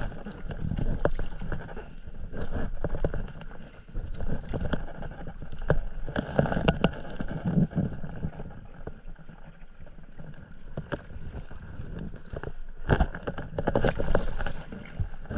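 A paddle splashes and dips into calm water with steady strokes.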